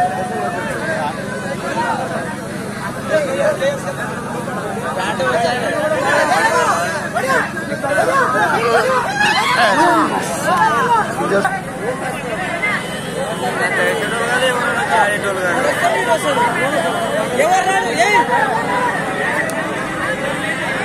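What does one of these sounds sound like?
A large crowd outdoors shouts and cheers excitedly.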